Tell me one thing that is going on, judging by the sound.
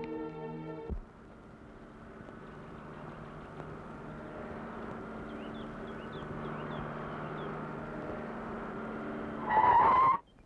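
A car engine hums as a car drives along a dirt road.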